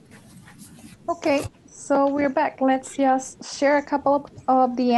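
A woman speaks calmly through an online call.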